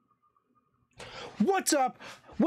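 A young man speaks energetically into a microphone.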